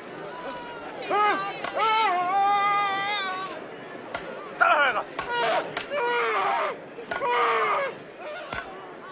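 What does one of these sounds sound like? A man cries out loudly in anguish.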